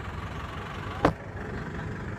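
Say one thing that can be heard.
A heavy thump sounds close by.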